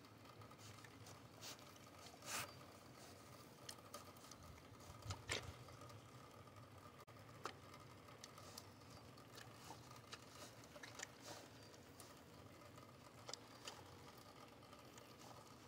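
A pig chews and crunches food noisily.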